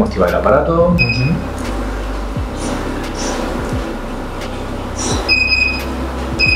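A machine beeps briefly.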